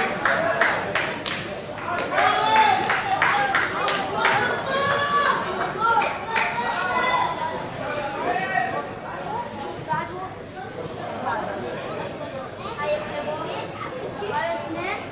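Young men shout to each other across an open sports field.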